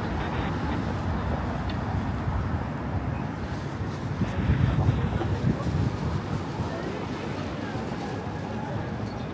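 Traffic hums steadily in a city street.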